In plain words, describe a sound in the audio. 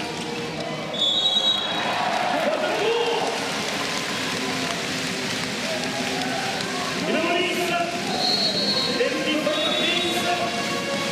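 A referee's whistle blows in short sharp bursts.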